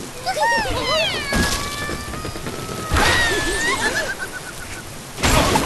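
Cartoon birds squawk and chirp in high voices.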